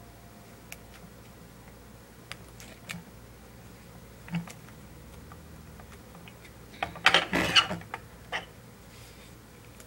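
Paper crinkles and rustles in hands.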